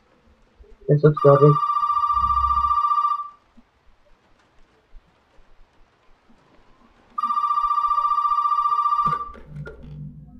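A telephone rings loudly in short bursts.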